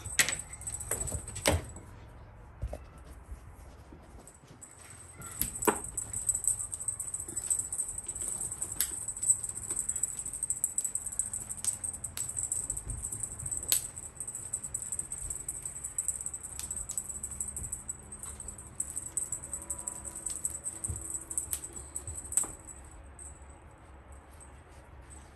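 A cat's paws thump and scratch on a padded cat tree.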